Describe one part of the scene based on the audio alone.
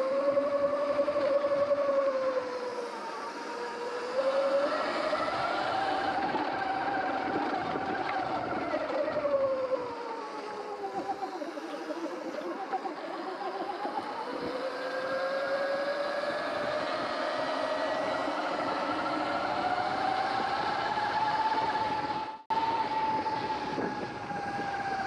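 An electric motor whines, rising and falling in pitch with speed.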